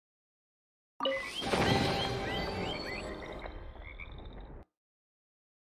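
A treasure chest opens with a bright, sparkling chime.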